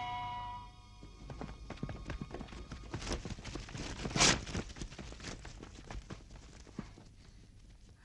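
Many footsteps rustle and crunch through undergrowth as soldiers run.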